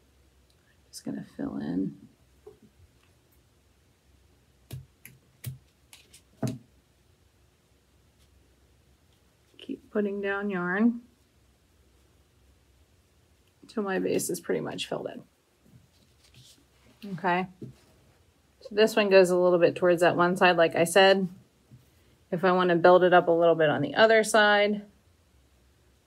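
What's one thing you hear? A woman speaks calmly and close by, in short bursts.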